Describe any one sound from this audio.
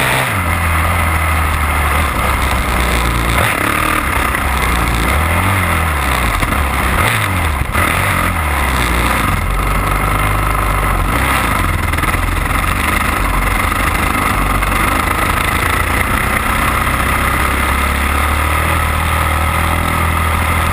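A motorcycle engine roars loudly up close, revving up and down.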